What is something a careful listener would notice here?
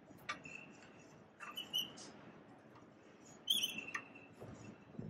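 Metal parts click and clank sharply as they are handled.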